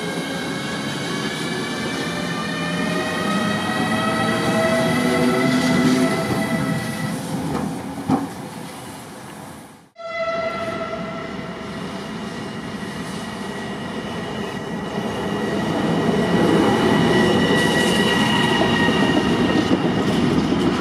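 An electric locomotive's motors whine with a steady high tone.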